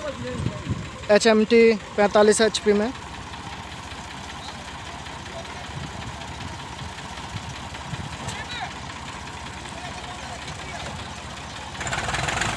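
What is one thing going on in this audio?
Tractor engines rumble and roar close by, outdoors.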